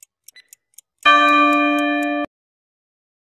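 A bell rings loudly once as the countdown ends.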